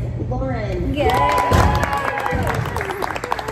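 Several young women cheer.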